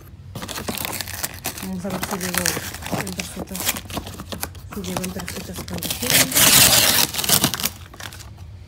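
Packing tape rips off a cardboard box.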